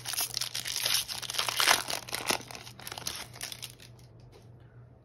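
A foil wrapper crinkles and tears as hands open it.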